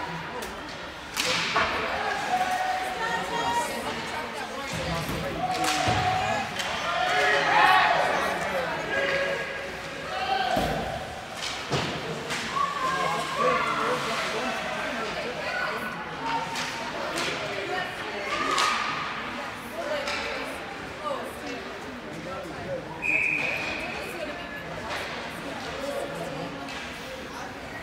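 Skates scrape across ice.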